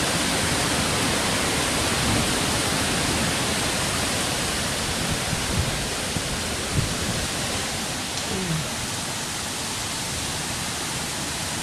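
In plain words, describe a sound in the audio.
Strong wind roars through tree leaves outdoors.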